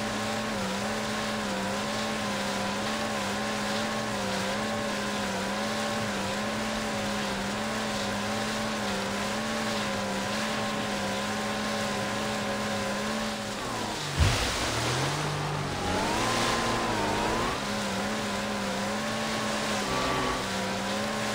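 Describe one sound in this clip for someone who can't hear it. A jet ski engine hums steadily, rising and falling in pitch.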